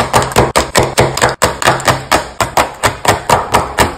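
A knife chops on a wooden board.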